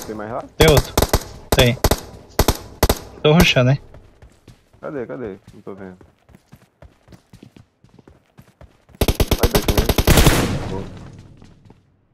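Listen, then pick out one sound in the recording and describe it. Footsteps run over dirt and wooden boards.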